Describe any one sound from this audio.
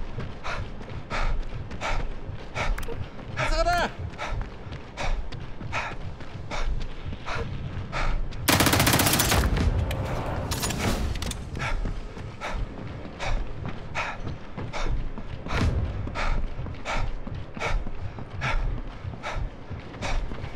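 Footsteps run quickly and evenly.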